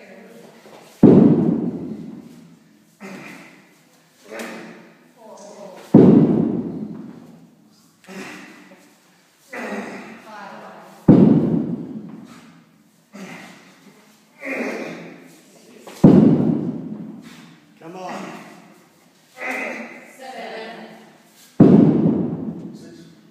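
A heavy ball thuds onto a hard floor again and again, echoing in a large room.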